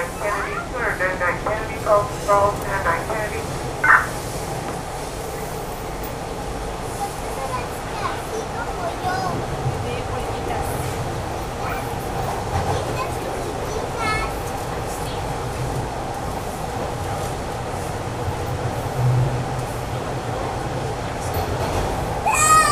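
A subway train rumbles steadily along the tracks.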